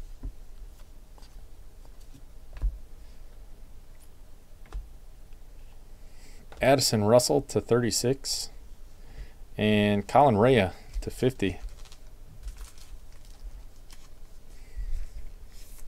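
Trading cards rustle and slide softly in hands.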